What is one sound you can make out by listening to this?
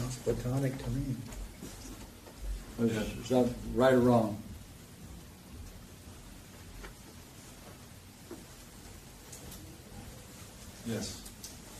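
An elderly man speaks calmly in a room with a slight echo.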